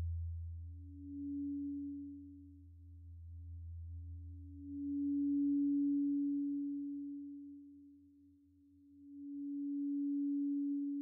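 A low synthesizer tone hums steadily in bursts.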